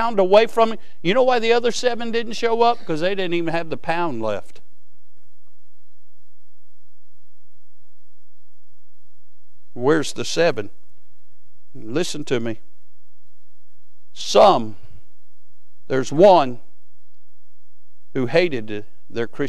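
A man speaks through a microphone in short phrases, with long pauses between them.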